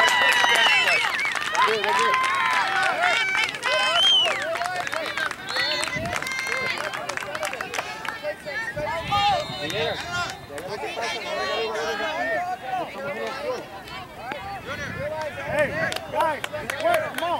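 Young players and spectators call out and talk across an open field.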